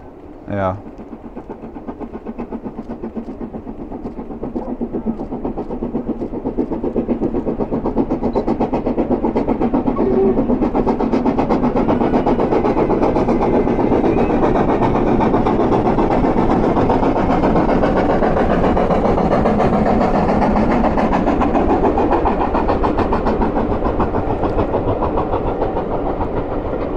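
Train carriages rumble and clatter over the rails.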